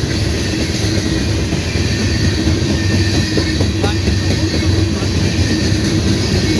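A long freight train rumbles past close by, its wheels clattering and squealing on the rails.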